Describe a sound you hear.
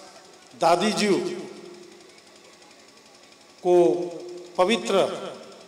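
A middle-aged man speaks with emphasis into a microphone, heard through loudspeakers with a slight echo.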